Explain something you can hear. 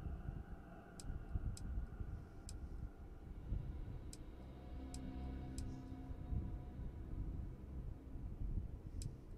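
Short, sharp menu clicks tick now and then.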